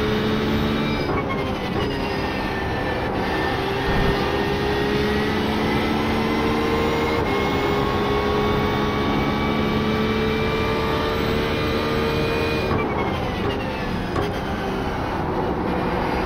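A racing car engine slows with deep downshifts into a corner.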